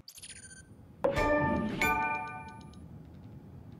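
A bright two-note chime rings out.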